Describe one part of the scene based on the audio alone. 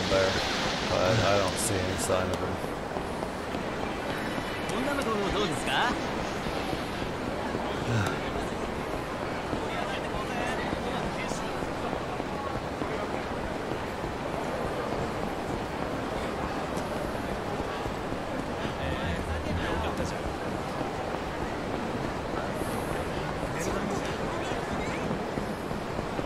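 A busy street hums with a crowd's murmur.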